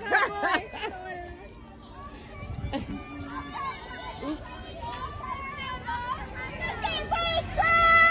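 A crowd of young women cheers and shouts outdoors.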